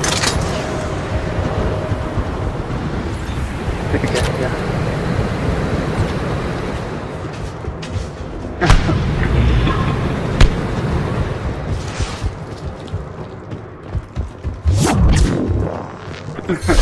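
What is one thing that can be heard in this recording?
Heavy armoured footsteps thud and clank on a hard floor.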